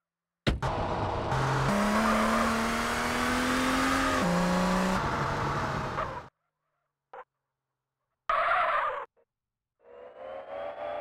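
A car engine roars and changes pitch as it revs.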